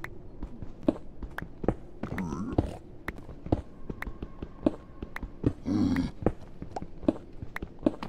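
Stone blocks crack and crumble as they are mined in a game.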